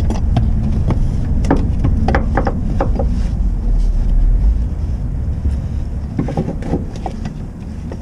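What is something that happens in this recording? Metal parts click and clink close by.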